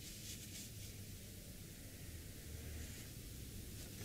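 A tissue rustles softly between fingers.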